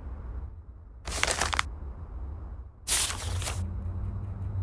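Book pages flip with a quick papery rustle.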